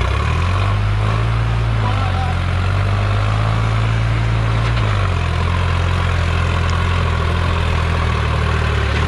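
A tractor engine rumbles steadily close by, shifting pitch as it drives.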